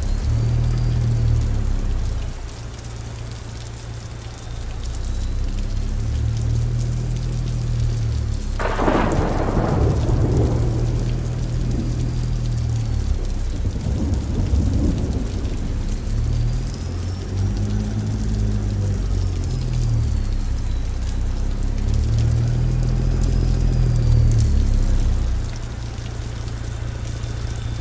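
A truck engine rumbles low and rises and falls as the truck manoeuvres.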